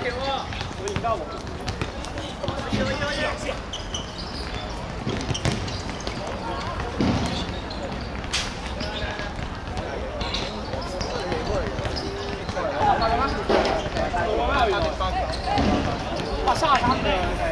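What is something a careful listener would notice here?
Sneakers squeak on the court surface.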